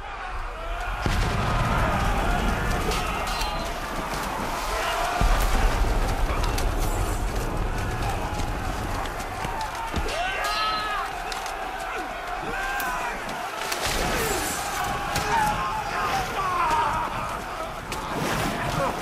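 Men shout and yell in a chaotic battle.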